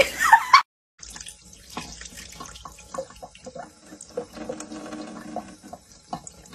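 Water trickles from a tap in a thin stream.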